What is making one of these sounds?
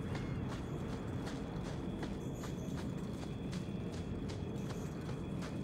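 Footsteps crunch quickly on a dirt path.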